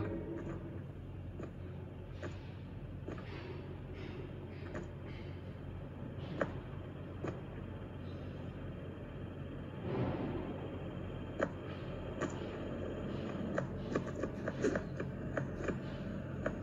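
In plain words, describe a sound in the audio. Fingers tap and click on a touchscreen.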